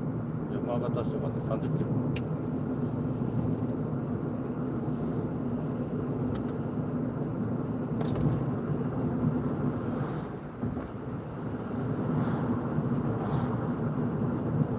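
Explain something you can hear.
Tyres roll on smooth asphalt.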